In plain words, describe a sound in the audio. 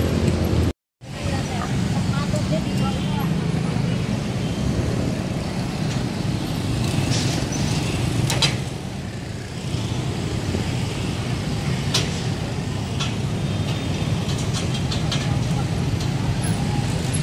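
Motorcycles and cars rumble past on a busy road.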